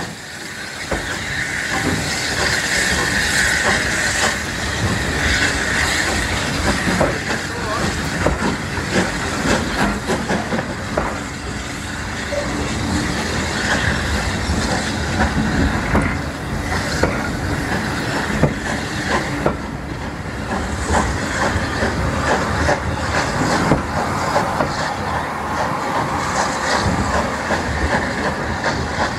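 A steam locomotive chuffs hard as a train pulls away.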